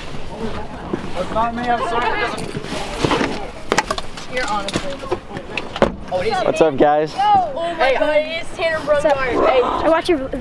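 Teenage boys shout and talk with animation nearby, outdoors.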